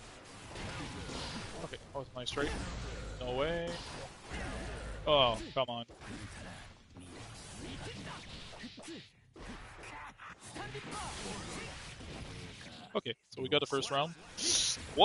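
Fighting-game hits and slashes crack and whoosh.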